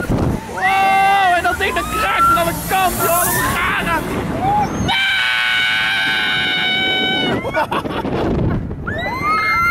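People scream loudly on a fast swinging fairground ride.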